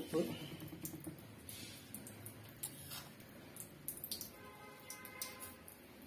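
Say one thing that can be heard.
A spoon taps lightly as it drops powder onto food.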